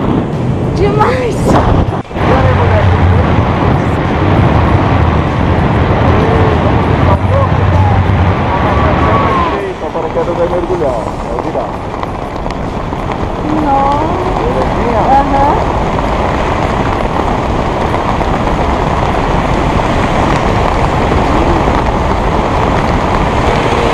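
Wind roars loudly past a microphone, then eases to a softer rush.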